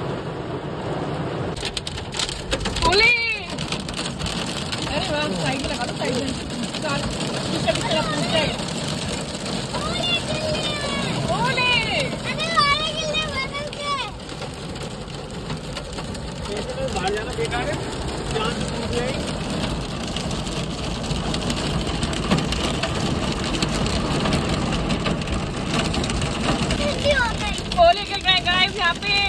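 Hail and heavy rain drum on a car's roof and windscreen.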